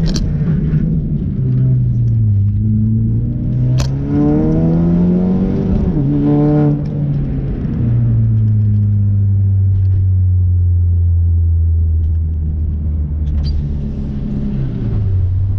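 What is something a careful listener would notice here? A car engine roars from inside the cabin, revving up and down through the gears.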